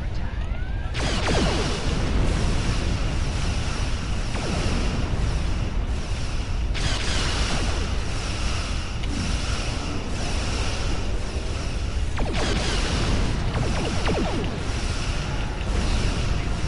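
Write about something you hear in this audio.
Weapons fire and zap in rapid bursts.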